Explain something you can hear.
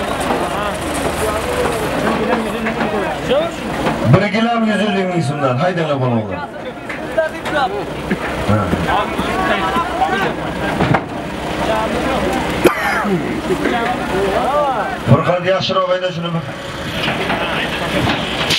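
Several men talk and call out loudly outdoors.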